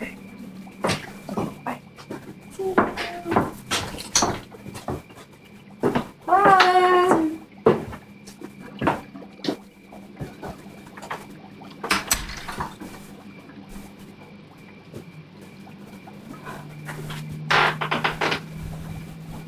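A young woman talks and laughs close by.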